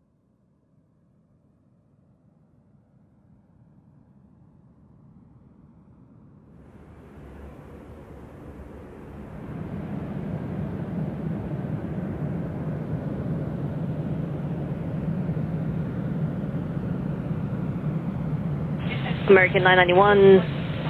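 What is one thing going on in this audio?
A jet engine hums and grows steadily louder as an airliner rolls along.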